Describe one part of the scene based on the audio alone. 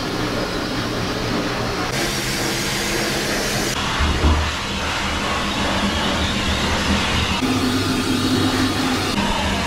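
A pet dryer blows air with a loud, steady roar.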